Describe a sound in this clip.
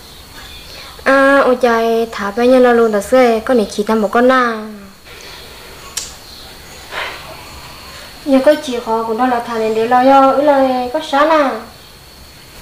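A young woman speaks close by in a calm voice.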